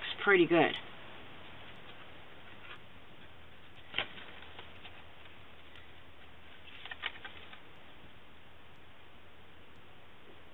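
Paper rustles softly as it is handled and folded.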